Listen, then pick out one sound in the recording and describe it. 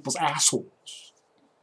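A young man speaks briefly and casually, close to a microphone.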